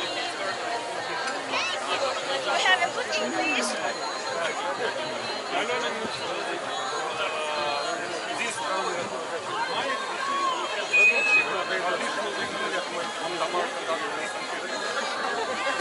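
A crowd of men and women chatter outdoors all around.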